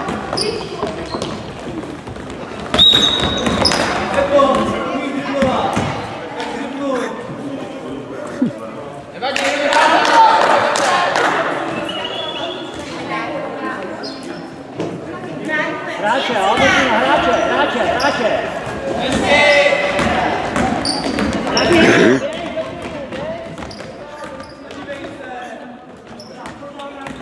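Children shout and call out across a large echoing gym.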